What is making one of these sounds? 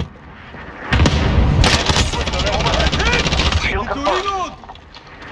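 A gun fires in rapid bursts at close range.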